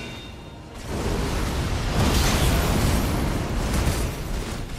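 A burst of fire roars loudly.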